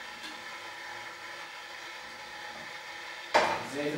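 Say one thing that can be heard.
Oil pours and trickles into a frying pan.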